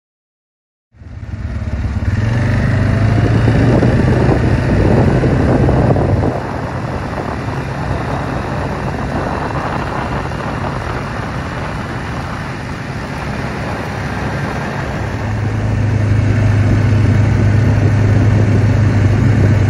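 Tyres roll and rumble over the road.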